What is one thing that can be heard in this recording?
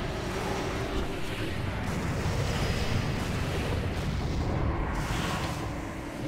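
Spell effects crackle and boom in a game battle.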